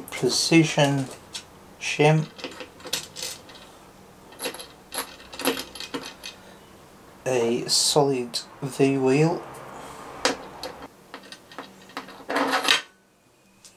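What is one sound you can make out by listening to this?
Small metal parts click and tap on a metal plate.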